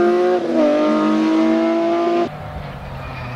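A rally car engine roars at high revs as the car speeds past.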